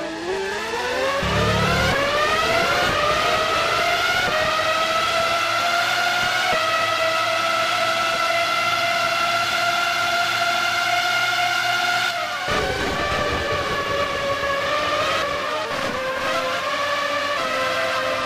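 A racing car engine whines loudly, rising in pitch as it speeds up, then drops sharply and climbs again.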